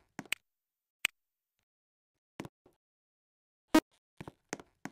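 A ticket machine gives short beeps.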